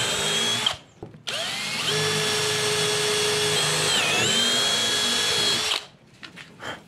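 A cordless drill whines at high speed, boring into wood.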